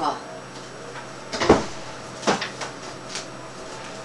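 A chair scrapes as a young woman gets up.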